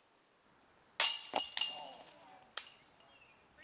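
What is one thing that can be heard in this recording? A flying disc strikes metal chains, which jingle and rattle.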